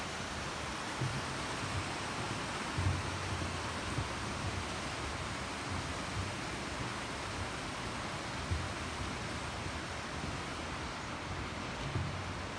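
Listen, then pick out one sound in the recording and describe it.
Footsteps thud on a wooden footbridge.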